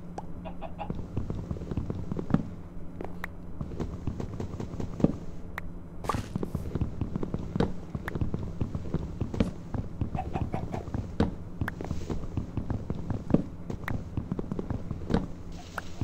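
Video game blocks of leaves crunch as they break.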